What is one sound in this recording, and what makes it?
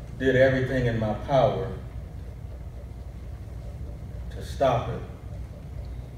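A man speaks slowly and deliberately into a microphone in an echoing room.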